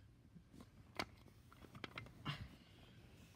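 Plastic toys knock and rattle as a hand handles them.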